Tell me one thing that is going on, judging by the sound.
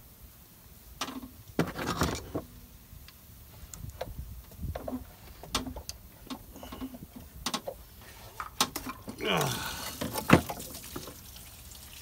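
Hands knock and rattle metal parts and rubber hoses in an engine.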